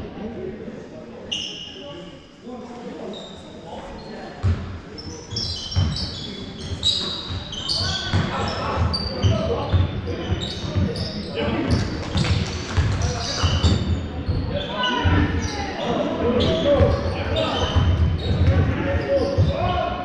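Players and coaches shout and call out across the hall.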